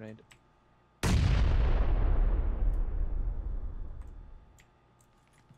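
A double-barrel shotgun blasts indoors, echoing and slowly fading.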